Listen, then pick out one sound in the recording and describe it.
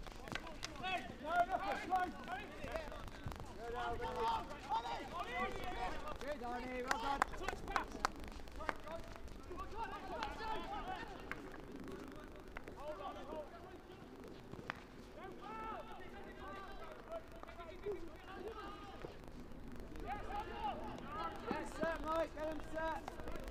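Hockey sticks sharply clack against a ball on an outdoor pitch.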